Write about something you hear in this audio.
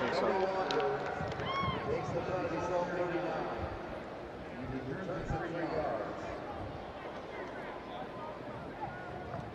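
A large stadium crowd cheers and chatters outdoors.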